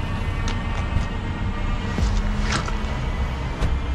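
A car door shuts.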